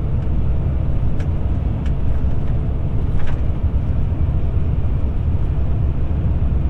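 Wind buffets against the moving car.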